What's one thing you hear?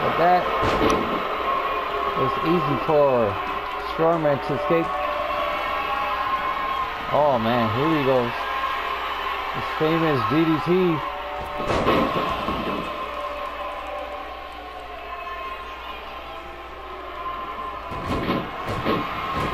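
Bodies thud heavily onto a wrestling ring mat.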